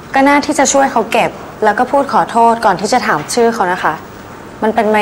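A young woman speaks firmly up close.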